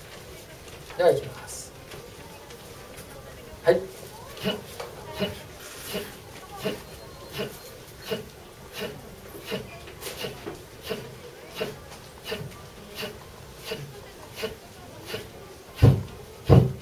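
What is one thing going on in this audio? An elderly man voices short, even bursts in a steady rhythm, close by.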